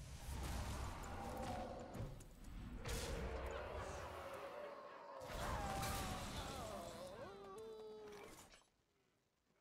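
A magical blast bursts with ringing game effects.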